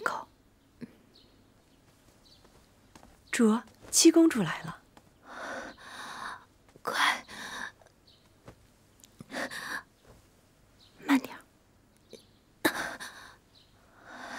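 A young woman speaks softly and gently, close by.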